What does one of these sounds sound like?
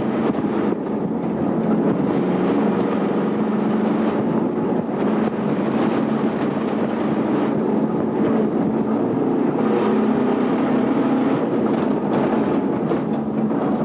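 A car engine roars loudly, heard from inside the car.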